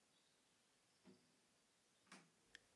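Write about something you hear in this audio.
A drum head is struck lightly a few times.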